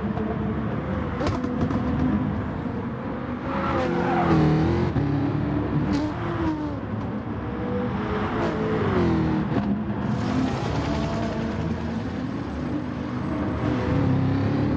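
Racing car engines roar and rev, rising and falling in pitch as gears change.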